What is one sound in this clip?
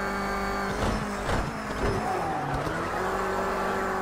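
Tyres squeal through a tight bend.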